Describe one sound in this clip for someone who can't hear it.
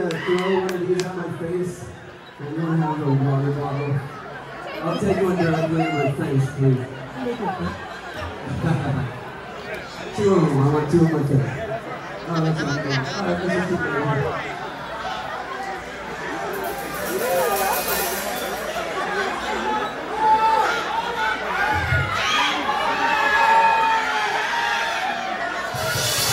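A live rock band plays loudly.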